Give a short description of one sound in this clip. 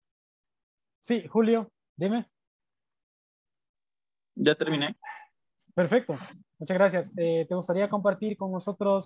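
A man speaks over an online call, in short phrases with pauses.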